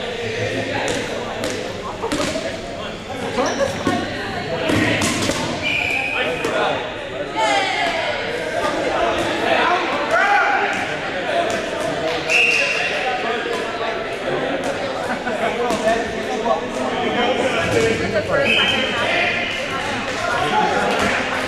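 Many young people shout and chatter in a large echoing gym.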